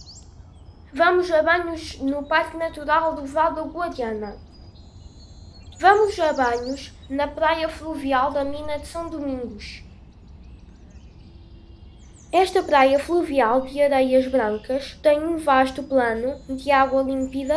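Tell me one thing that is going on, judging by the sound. A boy speaks with animation through a microphone.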